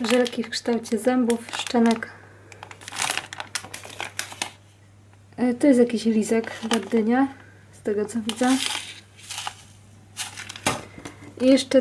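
Plastic candy wrappers crinkle as they are handled.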